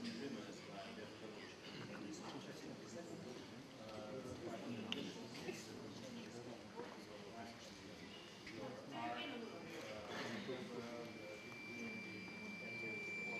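A man speaks calmly into a microphone, heard over loudspeakers in a large room.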